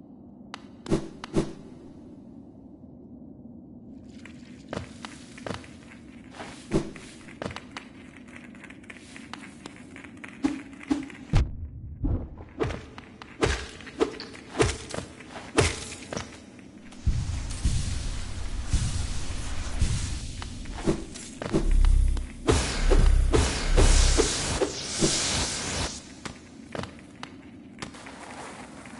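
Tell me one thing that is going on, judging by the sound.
Small footsteps patter and thud in short bursts.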